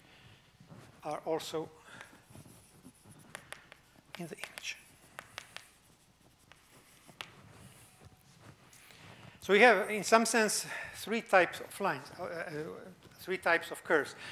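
An older man speaks calmly, as if lecturing.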